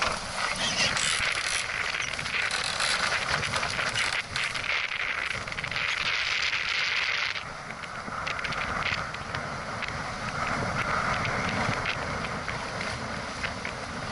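Water splashes against a boat's hull.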